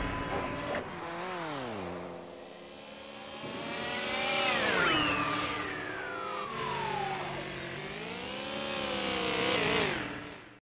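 Kart engines hum and rev, rising and falling in pitch.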